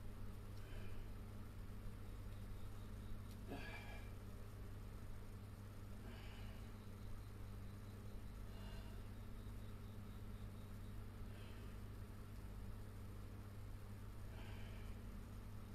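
An air conditioner hums steadily.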